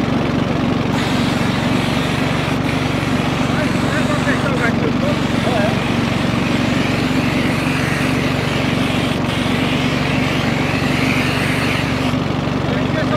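Water sprays from a high-pressure hose onto pavement with a hiss.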